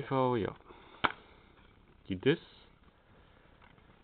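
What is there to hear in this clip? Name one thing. A plastic case snaps open.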